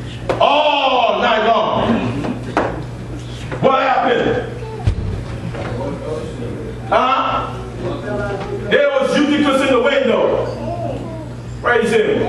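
A man preaches loudly with animation in an echoing hall.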